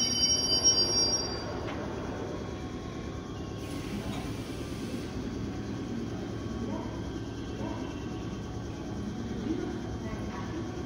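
A train idles with a low, steady hum.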